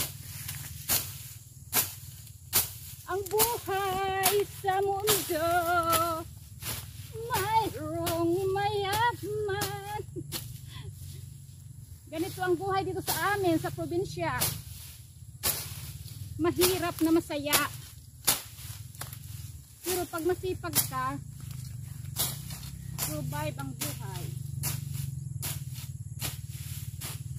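Leaves snap off their stems.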